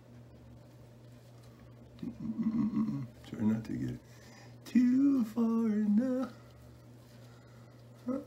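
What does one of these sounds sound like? Small scissors snip at a beard.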